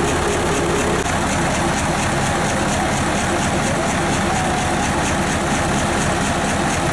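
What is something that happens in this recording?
Drive belts and pulleys whir as they spin.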